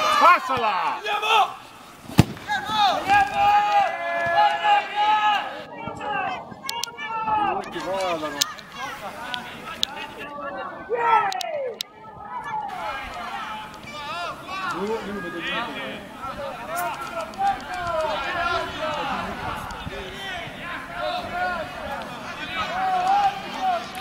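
Boys shout and call to each other outdoors.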